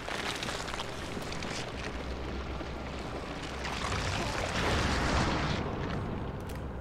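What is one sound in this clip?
A large snake hisses.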